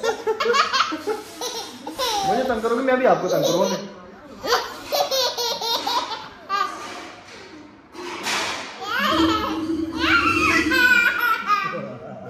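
A toddler giggles and squeals.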